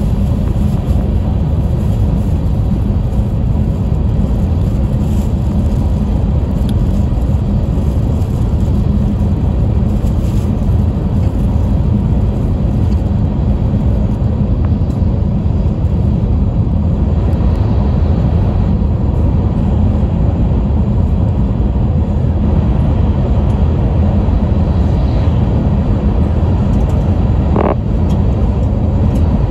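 A fast train hums and rumbles steadily from inside the carriage.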